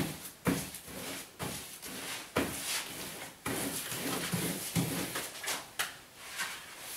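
A paste brush swishes across wallpaper.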